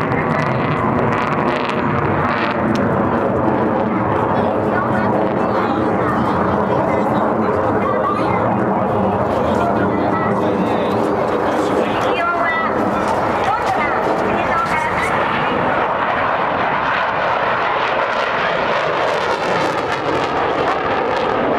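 A jet roars loudly overhead.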